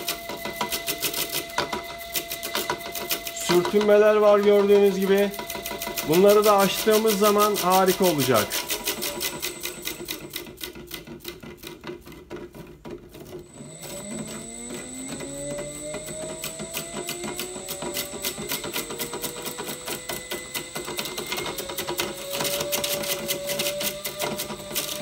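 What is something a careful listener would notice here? An electric motor ticks rapidly as it runs.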